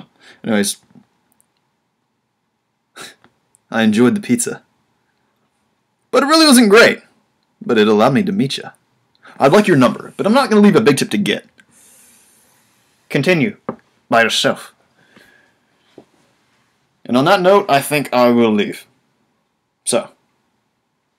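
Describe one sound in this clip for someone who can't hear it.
A young man speaks with animation close to a microphone, in short bursts with pauses.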